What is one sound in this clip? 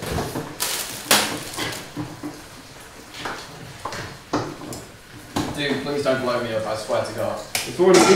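Kitchen utensils clatter and knock on a counter.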